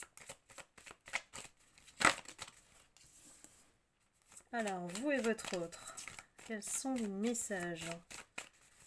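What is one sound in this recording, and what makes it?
Paper cards rustle and tap against a table.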